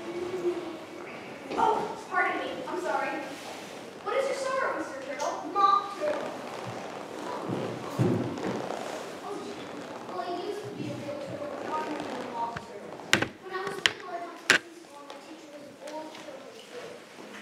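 A woman speaks on stage with animation, heard from across a hall.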